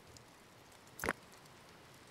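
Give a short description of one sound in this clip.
A short interface click sounds.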